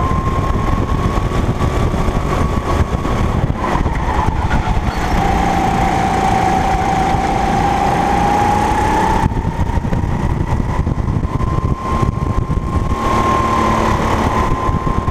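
Wind buffets loudly.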